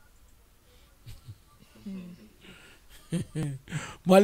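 A man laughs softly near a microphone.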